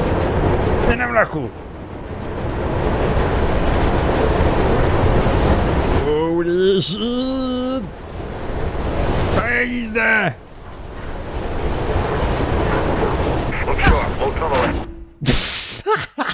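A train roars loudly through a tunnel.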